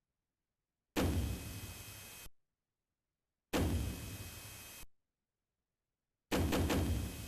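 Electronic game music plays in short bursts.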